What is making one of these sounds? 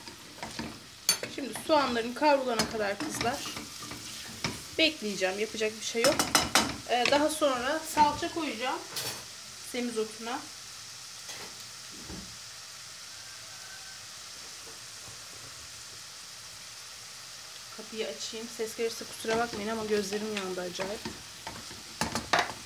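Onions sizzle softly in hot oil.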